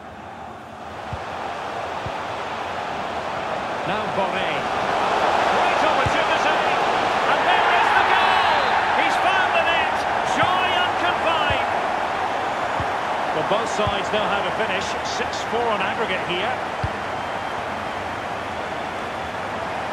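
A large stadium crowd roars and cheers, swelling loudly.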